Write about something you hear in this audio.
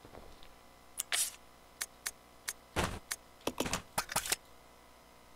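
Short electronic menu clicks and beeps sound in quick succession.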